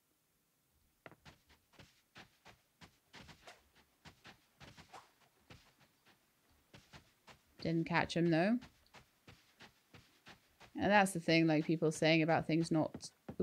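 Quick footsteps patter across soft grass.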